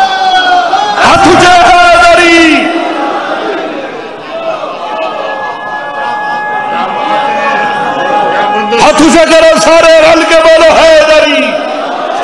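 A crowd of men chants loudly in unison.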